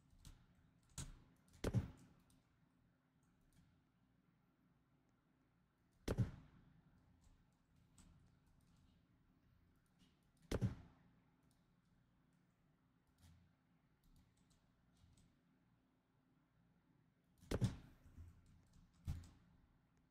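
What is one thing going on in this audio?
Short, soft thuds sound now and then as building pieces snap into place.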